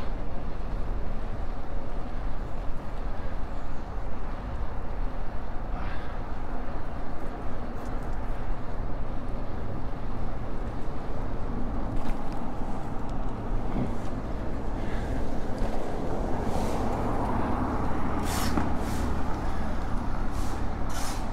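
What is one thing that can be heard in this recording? Bicycle tyres roll and hum on the road.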